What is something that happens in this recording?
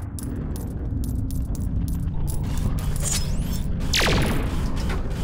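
Game music plays with a steady thumping beat.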